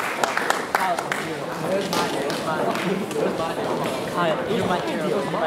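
Young women talk quietly in a large hall.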